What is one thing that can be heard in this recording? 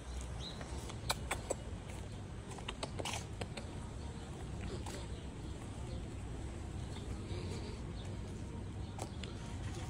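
Sandals slap on paving stones with slow footsteps.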